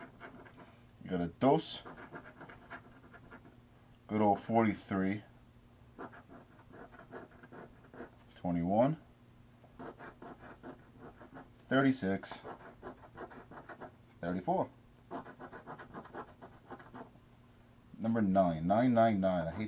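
A coin scratches across a scratch-off ticket.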